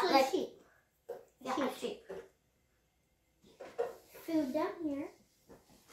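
A young girl talks nearby in a lively voice.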